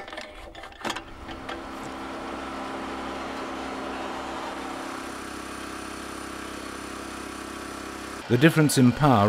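A cable pulling machine's motor hums steadily.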